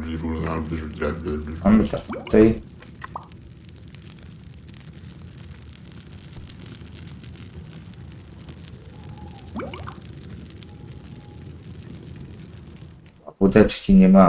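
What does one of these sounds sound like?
A fire hisses and crackles steadily in a stove.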